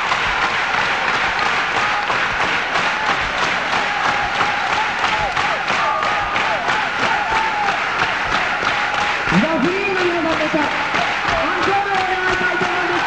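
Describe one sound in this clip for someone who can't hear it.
A rock band plays loudly in a live concert.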